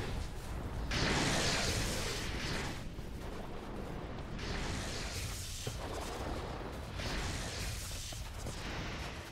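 Lightning crackles and bursts with a loud blast.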